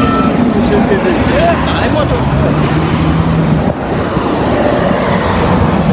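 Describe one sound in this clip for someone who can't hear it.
A truck engine rumbles as it passes.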